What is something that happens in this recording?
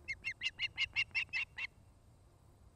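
A young osprey calls with a rapid series of shrill, piping chirps.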